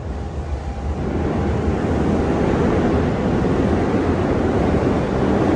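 A train rolls in close by with a growing rumble.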